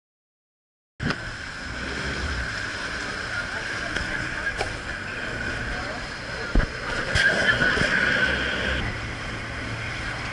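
Wind blows hard across the open water.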